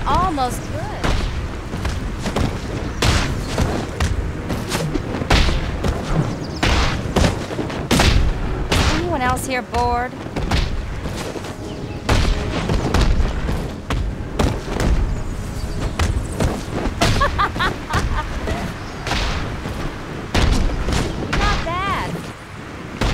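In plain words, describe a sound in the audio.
Punches and kicks land with heavy thuds in a fast brawl.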